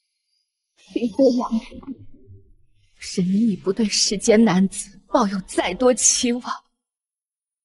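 A young woman speaks calmly and firmly.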